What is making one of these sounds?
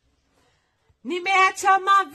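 A young woman whines loudly close by.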